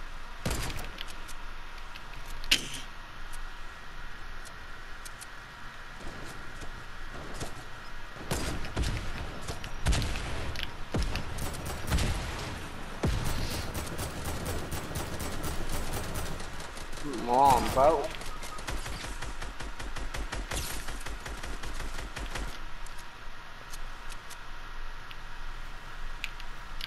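Guns fire in sharp shots and rapid bursts.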